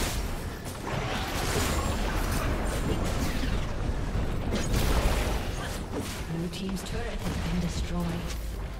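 Game spells crackle and boom in a fast battle.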